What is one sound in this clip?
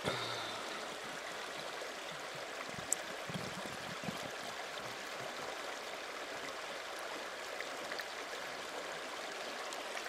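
Water sloshes as a hand pushes a bottle through it.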